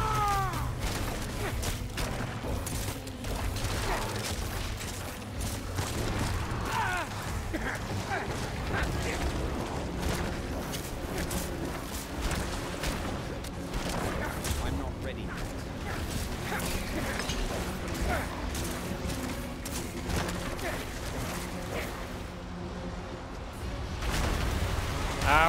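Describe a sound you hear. Magic blasts and hits crash and crackle in a fast fight.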